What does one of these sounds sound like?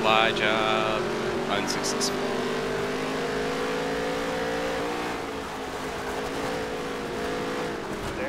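A racing car's engine roars steadily at high revs.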